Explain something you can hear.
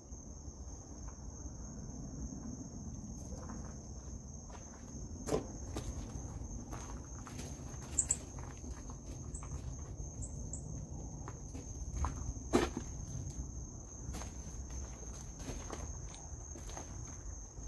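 Footsteps crunch over debris and gravel.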